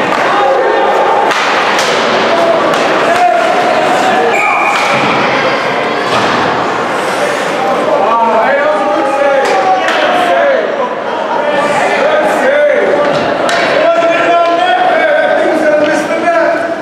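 Young men shout and call out across an echoing rink.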